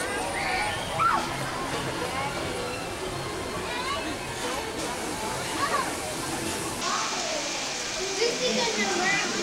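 A crowd of adults and children chatters nearby outdoors.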